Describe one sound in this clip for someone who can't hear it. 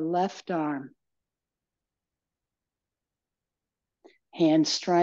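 A middle-aged woman speaks calmly in a room with a slight echo.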